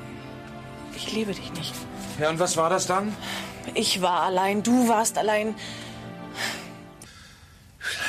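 A woman sings a slow melody.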